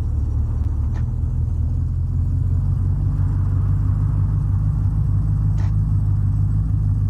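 A jeep engine rumbles steadily as it drives.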